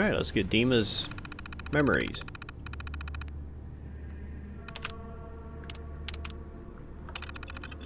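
A computer terminal chatters with rapid clicking as text prints.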